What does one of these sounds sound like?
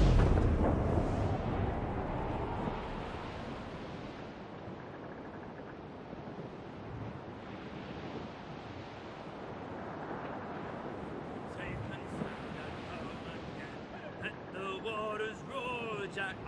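Waves splash against the hull of a sailing ship.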